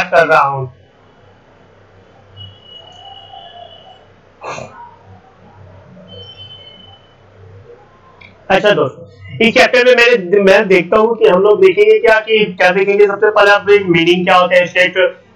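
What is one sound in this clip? A man speaks steadily into a close microphone, as if giving a lecture.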